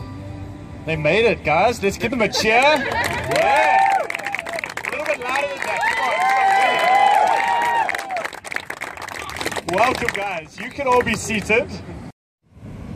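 A crowd of men and women cheers and whoops loudly.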